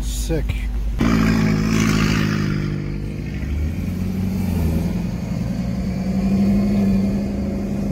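A car engine roars loudly as it accelerates hard.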